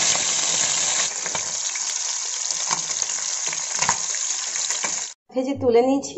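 Fish sizzles loudly in hot oil.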